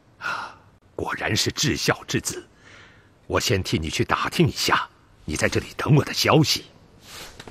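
A man speaks calmly and warmly in a deep cartoon voice.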